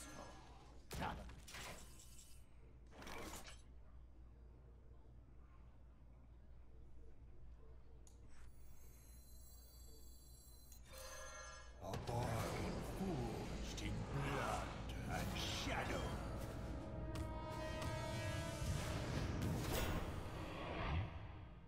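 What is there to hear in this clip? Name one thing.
Game magic effects whoosh and chime loudly.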